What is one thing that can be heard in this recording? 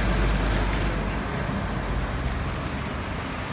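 A truck engine rumbles as it drives past close by.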